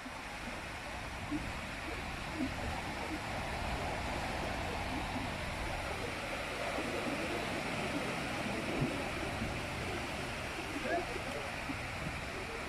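Ocean waves break and wash steadily onto a beach.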